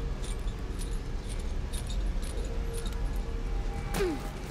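A metal chain clinks and rattles.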